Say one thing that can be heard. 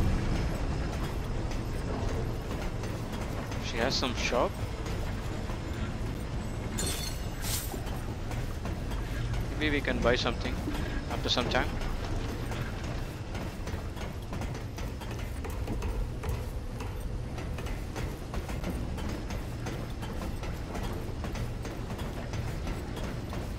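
Footsteps clang on metal grating.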